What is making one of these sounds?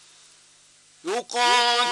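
A man begins chanting loudly in a long, melodic voice through a microphone.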